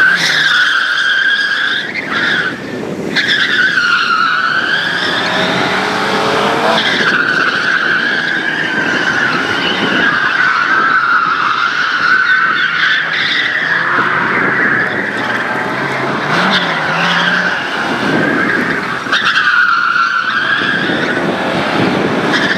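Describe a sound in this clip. Tyres squeal on asphalt as a rally car corners.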